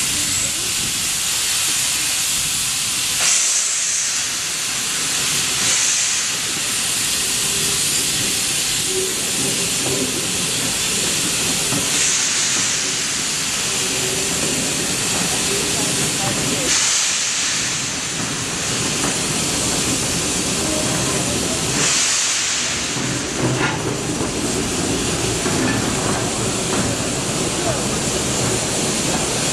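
A steam locomotive hisses loudly, venting steam in an echoing shed.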